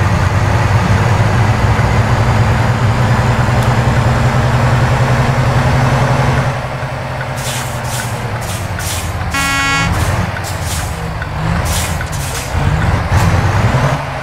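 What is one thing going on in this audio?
A truck engine drones low and steady from inside the cab.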